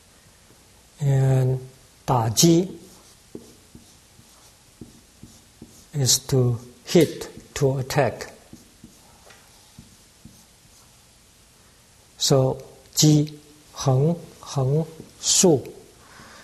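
A man speaks slowly and clearly, close by, with pauses between words.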